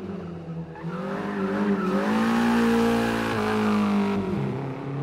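Tyres screech as a car spins its wheels.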